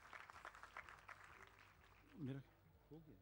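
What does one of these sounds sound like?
People applaud in a large hall.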